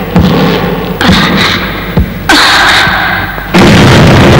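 A woman gasps and moans heavily.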